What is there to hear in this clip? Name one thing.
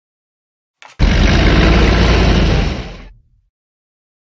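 A game sound effect rumbles loudly as a card is played.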